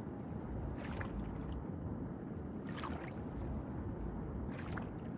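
A swimmer strokes through water in regular bursts of bubbling.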